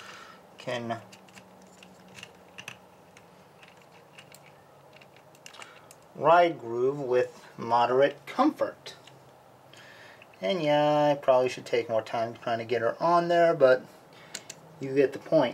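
Small plastic parts click and snap as a toy is handled.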